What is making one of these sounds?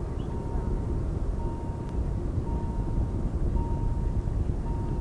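Wind blows outdoors, buffeting loudly.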